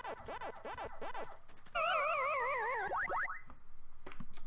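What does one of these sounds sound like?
Electronic arcade game sound effects warble and chirp.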